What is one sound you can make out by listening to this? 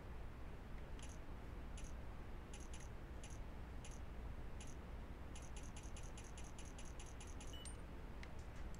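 Poker chips click together.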